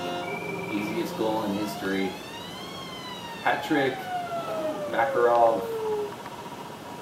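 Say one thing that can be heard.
Electronic sound effects chirp and sweep up and down from a television.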